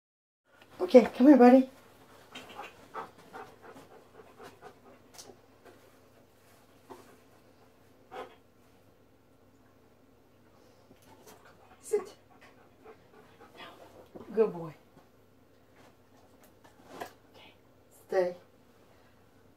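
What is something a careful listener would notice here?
A man gives short, firm commands to a dog close by.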